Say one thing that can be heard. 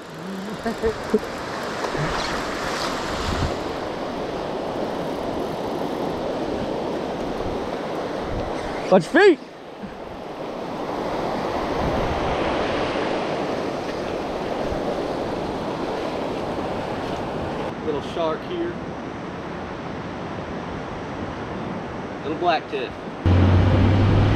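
Waves wash and break along a shore.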